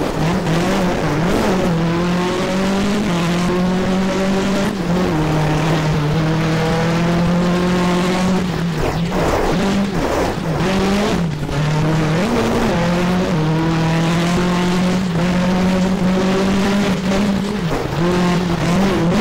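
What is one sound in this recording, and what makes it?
A car engine drones loudly, rising and falling in pitch as it shifts gears.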